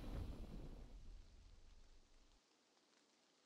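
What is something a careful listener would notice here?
A triumphant game fanfare swells and quickly fades away.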